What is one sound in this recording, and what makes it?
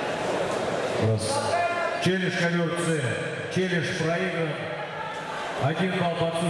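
A man shouts loudly in a large echoing hall.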